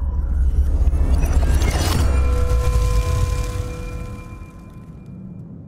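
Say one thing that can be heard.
A bright shimmering chime rings out.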